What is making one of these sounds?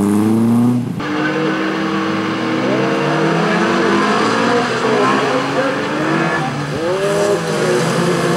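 Several race car engines rev together at a start.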